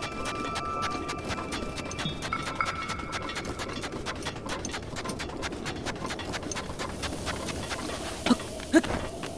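A horse gallops, its hooves thudding quickly on sand.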